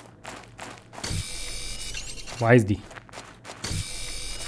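A mining laser hums steadily.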